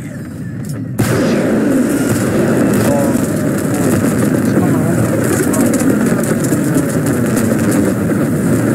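Explosions roar in a dense, continuous din.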